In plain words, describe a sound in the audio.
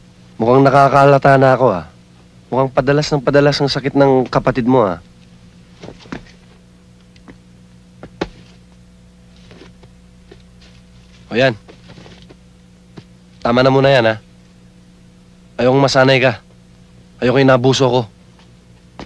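A young man speaks tensely and closely, in short bursts.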